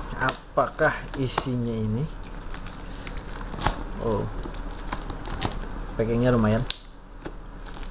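Plastic wrapping crinkles and rustles as hands pull it open.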